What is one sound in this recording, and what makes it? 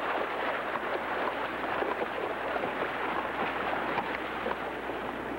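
Horses' hooves splash through shallow water.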